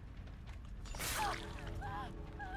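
A blade slashes and strikes with a loud hit.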